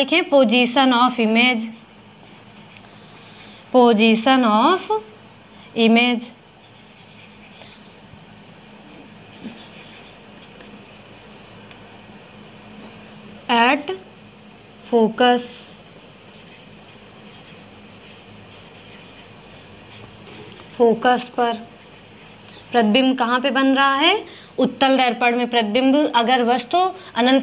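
A young woman speaks calmly and clearly, as if explaining, close to a microphone.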